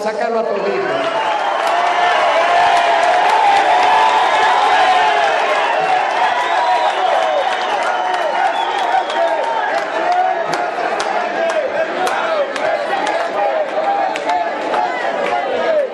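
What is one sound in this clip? People in a crowd clap their hands rapidly.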